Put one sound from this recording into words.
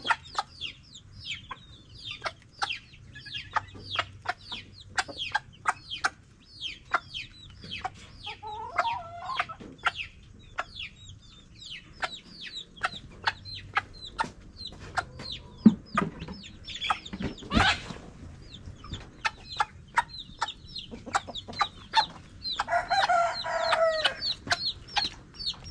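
Chicks peep rapidly and shrilly.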